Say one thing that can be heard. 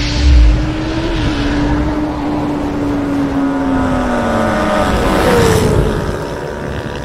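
A motorcycle engine revs loudly and its pitch falls away.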